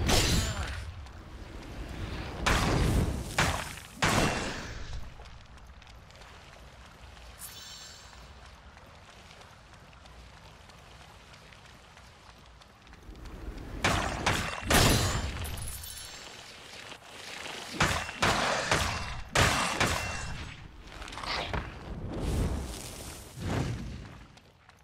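Magic blasts whoosh and crack in quick bursts.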